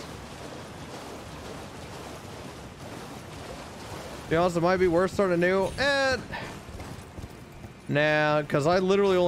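Horse hooves clop steadily on stone and shallow water.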